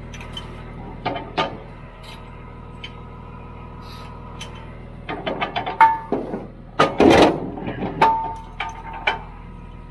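Metal parts clink and knock against a steel frame.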